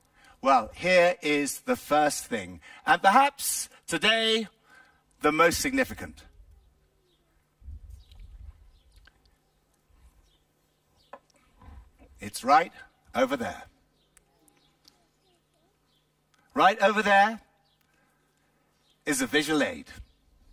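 An older man speaks with animation over a microphone, outdoors, in pauses between phrases.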